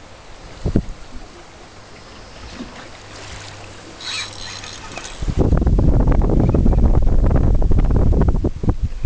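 Sea water laps against a boat's hull.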